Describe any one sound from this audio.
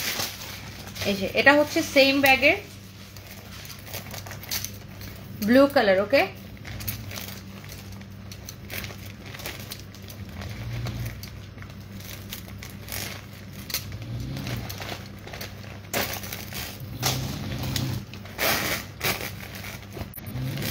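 A metal chain jingles.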